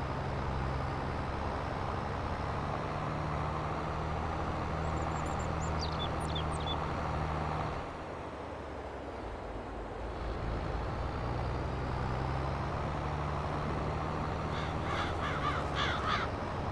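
A tractor engine drones steadily, dipping briefly as it slows and then pulling again.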